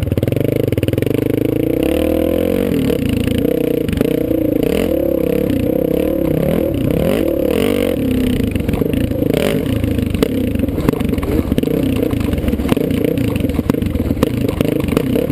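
A dirt bike engine revs loudly up close, rising and falling.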